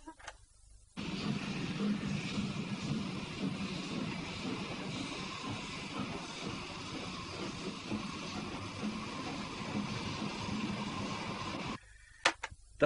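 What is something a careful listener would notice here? A steam locomotive chugs and hisses steadily.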